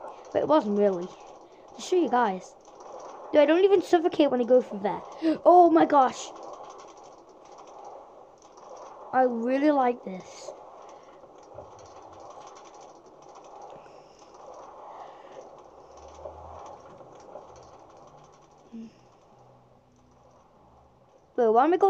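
A game minecart rolls steadily along its rails.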